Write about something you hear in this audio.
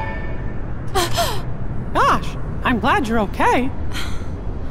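A high-pitched cartoonish male voice speaks with relief.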